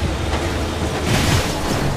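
A loud crash bursts as a vehicle smashes through debris.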